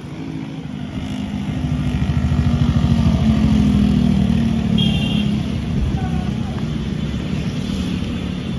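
A motorbike engine hums past on a wet road.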